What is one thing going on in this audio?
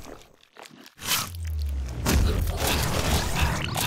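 A deep explosion rumbles loudly.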